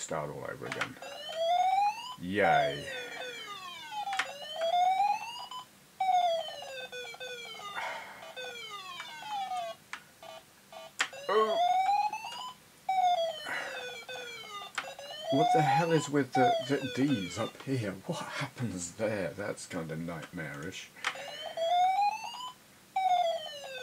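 Electronic game tones glide up and down in pitch, repeating in quick runs.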